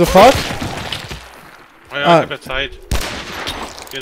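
A rifle fires nearby with a sharp bang.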